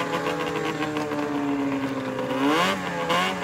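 A snowmobile engine idles with a steady drone.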